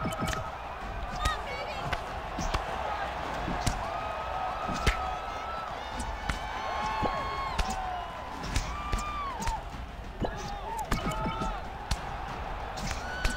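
Punches land with sharp thuds.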